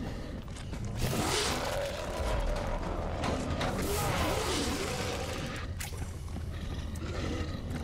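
Gas sprays out with a loud hiss.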